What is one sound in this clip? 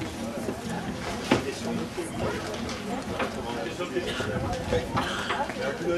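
Footsteps tread on a wooden deck close by.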